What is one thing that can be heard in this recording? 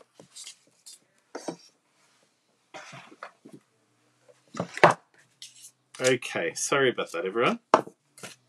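Paper rustles as cards are handled.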